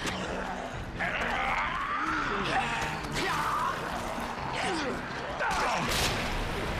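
A man cries out in pain.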